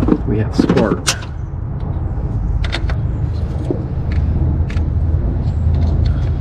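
Metal tools click and clink against an engine part.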